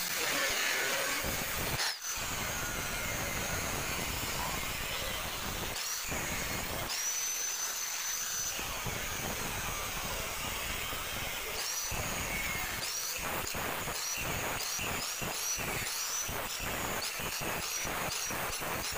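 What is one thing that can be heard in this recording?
An angle grinder whines loudly as it cuts through sheet metal.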